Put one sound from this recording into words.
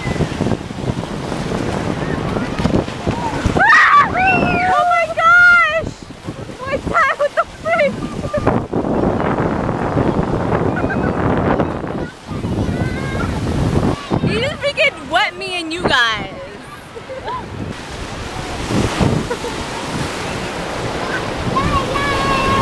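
Waves wash and splash onto the shore.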